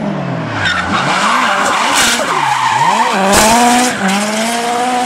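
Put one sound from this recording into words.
Tyres screech loudly as a car drifts.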